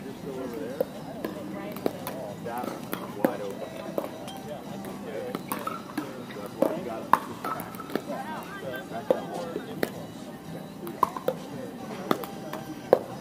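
Several adults chat nearby outdoors.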